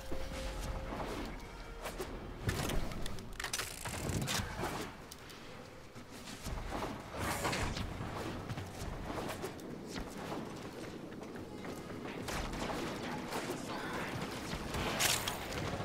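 A blade swings and whooshes in quick strikes.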